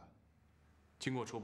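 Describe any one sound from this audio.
A young man answers briefly, close by.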